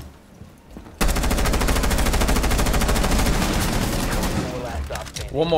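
An automatic rifle fires a long rapid burst.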